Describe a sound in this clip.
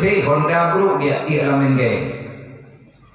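A man speaks loudly into a microphone, his voice ringing through loudspeakers.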